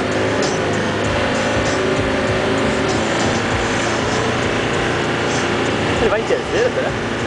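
A vehicle engine roars steadily while driving over sand.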